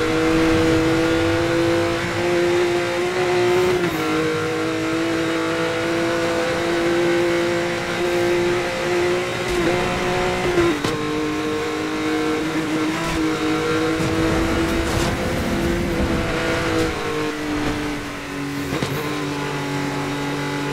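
A sports car engine roars steadily at high speed, shifting pitch now and then.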